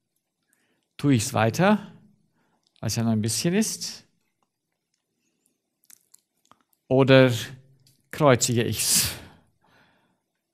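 A middle-aged man speaks with animation, in short bursts with pauses, close to a microphone.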